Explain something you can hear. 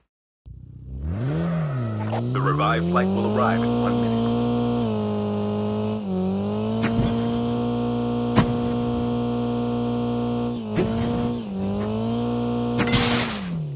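A car engine starts up and revs, then hums steadily as the car drives.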